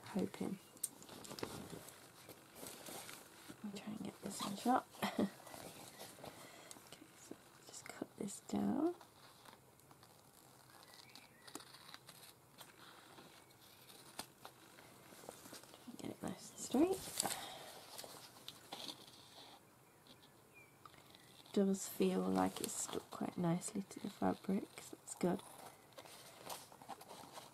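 Fabric rustles and crinkles as hands handle it.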